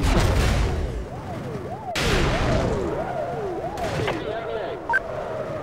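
A police siren wails close by, rising and falling.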